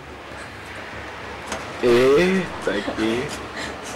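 A window slides open.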